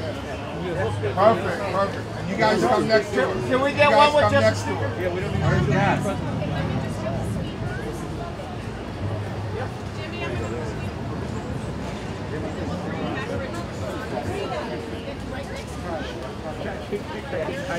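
A crowd chatters outdoors nearby.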